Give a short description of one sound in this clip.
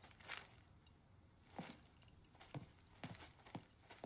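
Hands and feet clank on a metal ladder.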